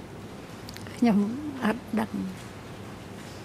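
A man speaks briefly through a microphone in a calm voice.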